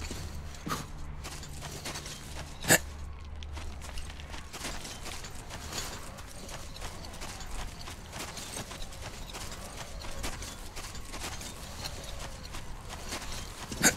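Footsteps crunch through dry grass and dirt.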